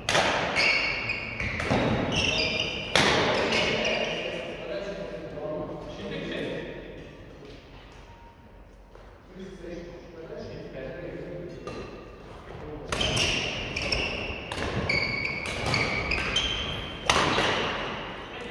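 Sports shoes squeak on a court floor.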